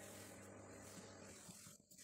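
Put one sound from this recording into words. A cloth rubs softly across a smooth stone sill.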